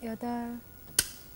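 A wooden game piece clacks sharply onto a board.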